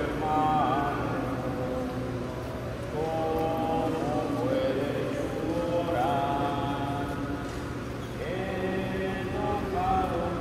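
A man murmurs a blessing in a large echoing hall.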